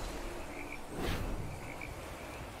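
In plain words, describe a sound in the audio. A magical whoosh bursts out and quickly fades.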